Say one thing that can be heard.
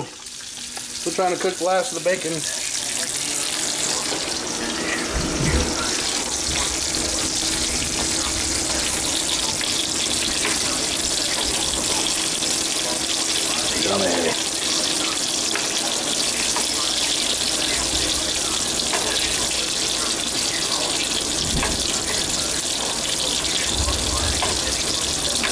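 Meat sizzles and crackles in a frying pan.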